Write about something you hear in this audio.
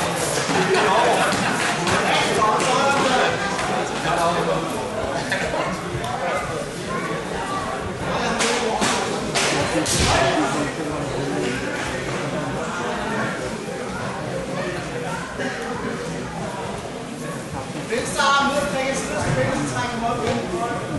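Grapplers' bodies thump and shuffle on a mat.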